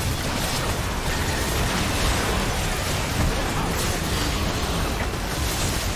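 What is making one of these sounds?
Game spell effects crackle and burst in a busy fight.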